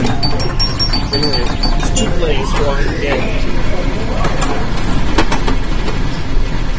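Pinball machines chime and beep all around.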